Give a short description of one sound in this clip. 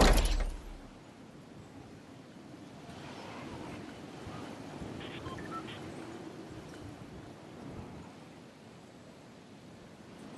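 Wind rushes steadily while a game character glides down.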